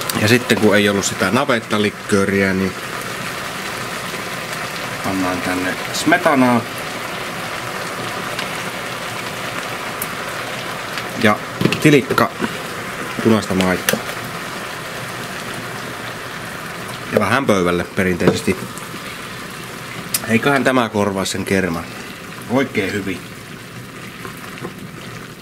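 Food sizzles steadily in a pan.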